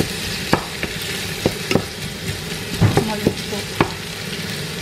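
A wooden spatula scrapes and knocks against a metal pot.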